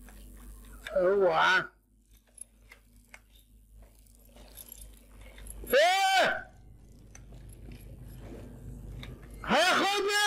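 A young man shouts loudly into a headset microphone in short bursts.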